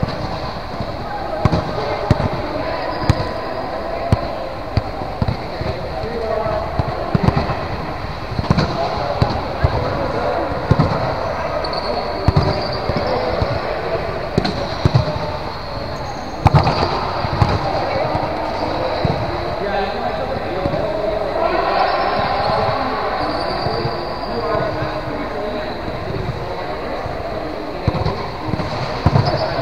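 Sneakers squeak and patter on a hard court.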